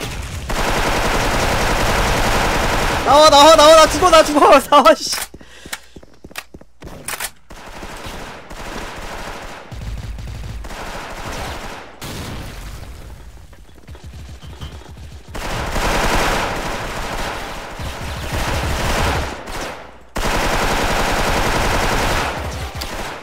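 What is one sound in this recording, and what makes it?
An automatic rifle fires rapid bursts of gunshots.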